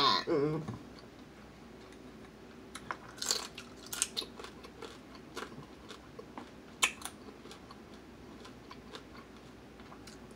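A young woman chews and smacks her lips.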